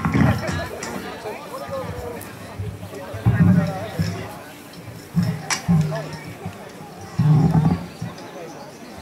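Low thumps come from equipment being moved on a stage.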